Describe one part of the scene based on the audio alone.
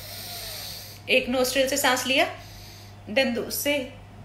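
A young woman speaks close by in a soft, animated voice.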